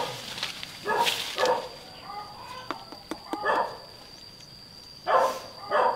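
Leaves rustle softly as hands brush a tree branch.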